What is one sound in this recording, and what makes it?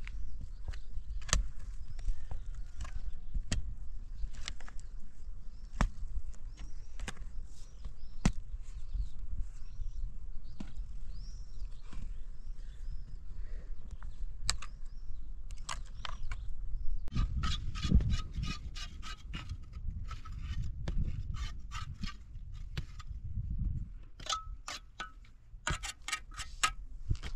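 A hoe strikes hard, stony earth again and again.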